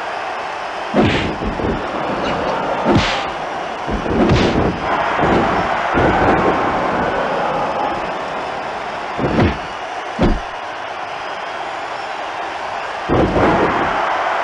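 Heavy blows and body slams thud onto a wrestling ring mat.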